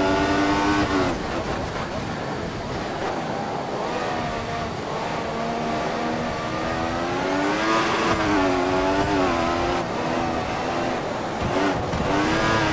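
Gears shift with quick breaks in the engine's whine.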